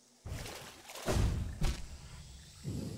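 A blade slashes and strikes with a sharp hit.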